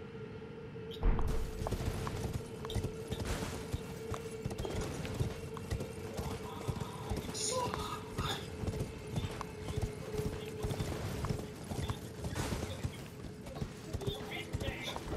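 Horse hooves clop quickly on stone paving.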